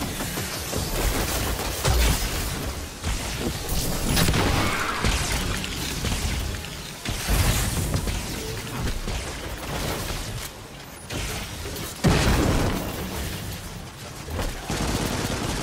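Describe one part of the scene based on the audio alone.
Gunfire and energy blasts boom and crackle in quick bursts.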